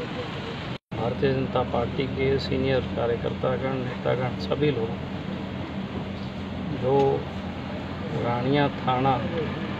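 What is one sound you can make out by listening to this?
A middle-aged man speaks calmly and close into a microphone.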